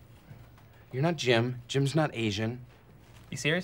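A second man answers calmly nearby.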